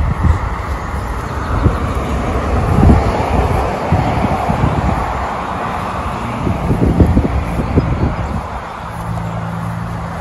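A dog sniffs and snuffles close by in the grass.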